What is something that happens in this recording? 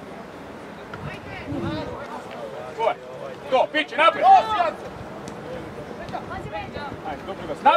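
Young men shout across an open field outdoors.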